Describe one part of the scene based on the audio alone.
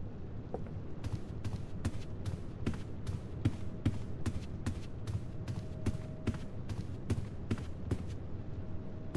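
Footsteps tap steadily on a wooden floor.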